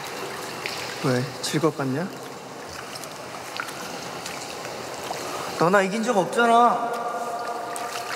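A young man calls out loudly in an echoing hall.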